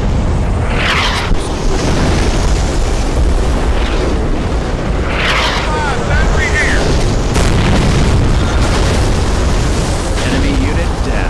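Shells explode.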